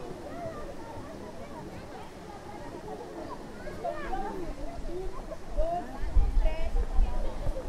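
Water splashes as a swimmer swims through a pool.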